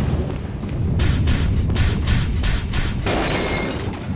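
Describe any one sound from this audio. Metal armour clanks with heavy footsteps.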